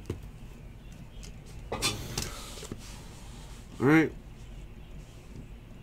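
A cardboard box slides and rustles in someone's hands.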